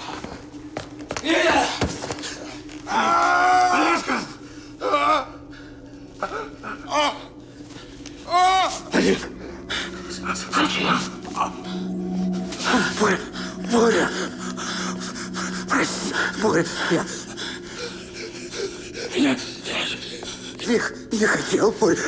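A man speaks urgently and tensely, close by.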